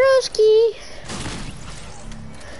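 A pickaxe strikes a tree trunk with dull thuds.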